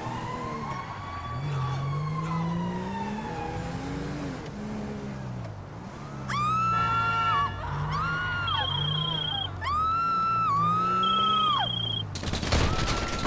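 A car engine hums and revs as it drives.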